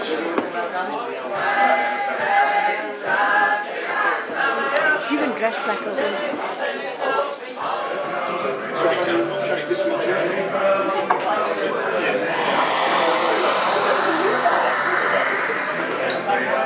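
A crowd of people chatters nearby in a busy room.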